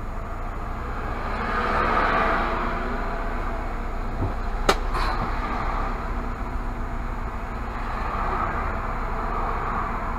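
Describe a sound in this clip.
Oncoming vehicles pass close by with a rush of tyres.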